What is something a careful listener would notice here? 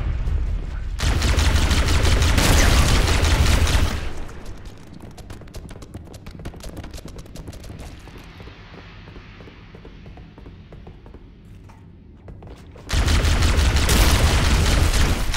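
An energy rifle fires in rapid bursts.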